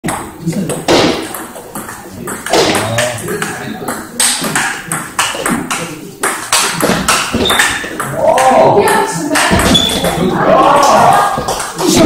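A table tennis ball clicks rapidly back and forth off paddles and a table.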